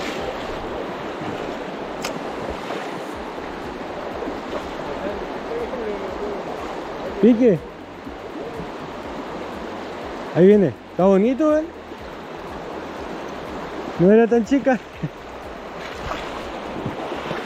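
A shallow river rushes steadily over stones outdoors.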